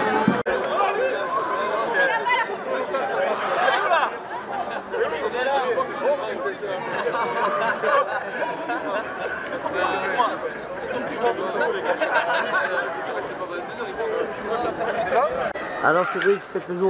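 A crowd of men and women chatter and call out together outdoors.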